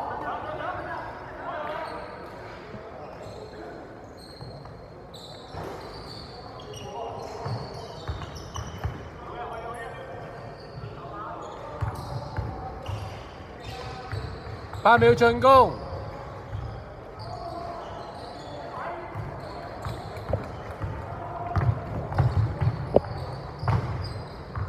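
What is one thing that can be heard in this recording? Sneakers squeak sharply on the court.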